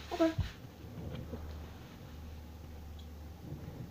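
A young girl shushes softly.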